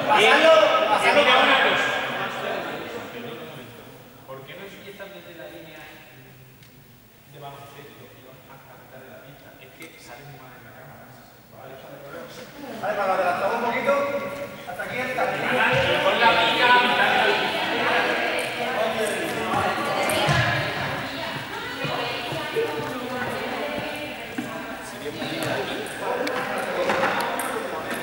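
A group of young people chatter and call out, echoing in a large hall.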